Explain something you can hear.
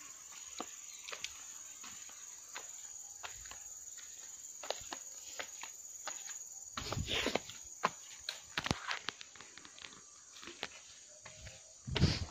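Bare feet step and thump on wooden logs.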